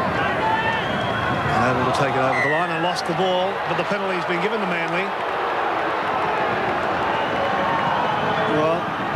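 A large crowd roars and murmurs in a stadium.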